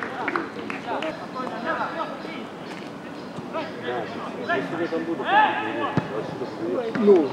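Men shout to each other outdoors on an open field.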